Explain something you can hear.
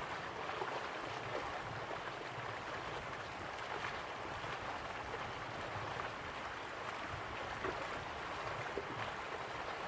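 Waterfalls rush and splash steadily in the distance.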